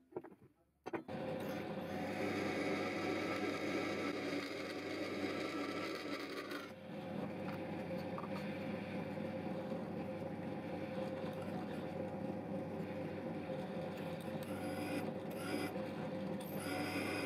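A drill whirs steadily and grinds into metal.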